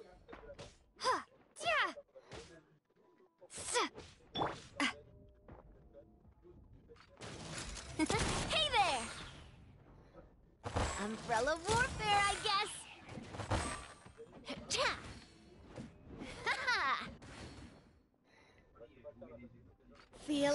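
Magic blasts crackle and whoosh in quick bursts.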